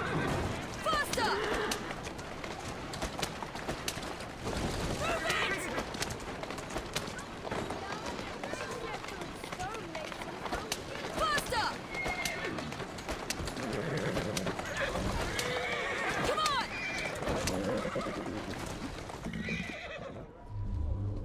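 Carriage wheels rumble and rattle over a rough road.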